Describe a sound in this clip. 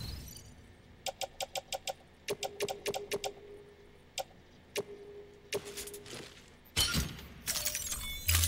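Menu interface beeps and clicks sound in quick succession.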